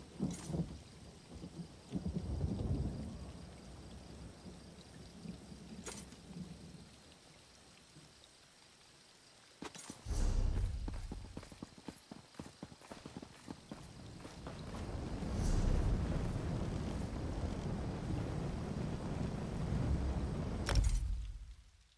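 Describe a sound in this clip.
A menu interface clicks sharply a few times.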